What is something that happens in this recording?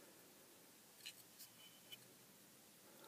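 Small plastic parts click softly as they are handled.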